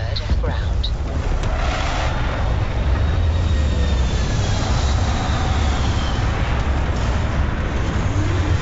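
A spacecraft's engines roar steadily as it descends and lands.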